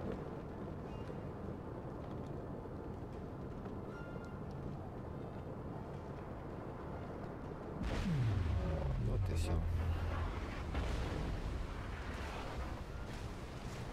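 Fires roar and crackle on a burning ship.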